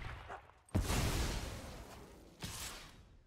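A game's spell effect bursts with a deep rumbling whoosh that fades.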